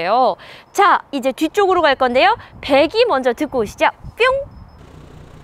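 A young woman speaks brightly and with animation close by.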